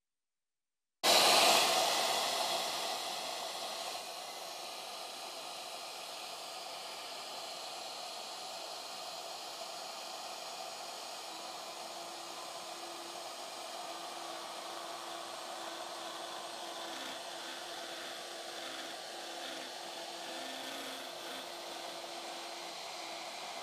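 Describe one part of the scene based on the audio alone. A small power tool hums steadily.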